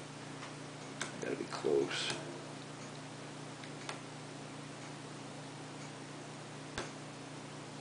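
Small metal parts click and tap lightly.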